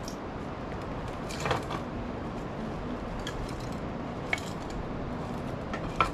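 Firewood logs knock against a metal stove.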